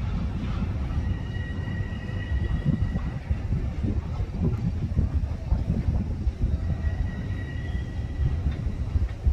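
Train wheels squeal thinly on the rails.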